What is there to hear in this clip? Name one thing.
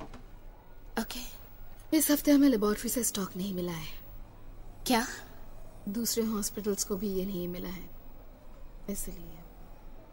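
Another young woman answers quietly, close by.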